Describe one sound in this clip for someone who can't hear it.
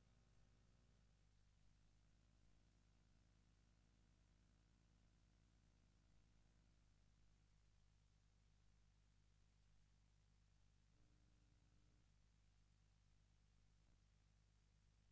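Faint electronic arcade game music plays.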